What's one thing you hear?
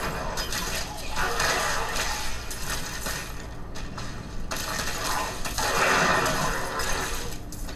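Spells crackle and explode in a fight.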